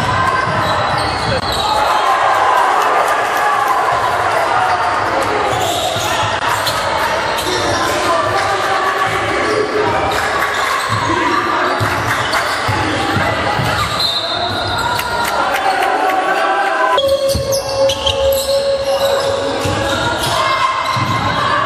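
Young men shout and call out across the echoing hall.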